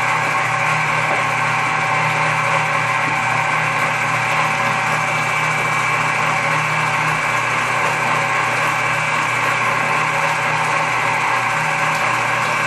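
Crushed tomato pulp squelches and drips into a bucket.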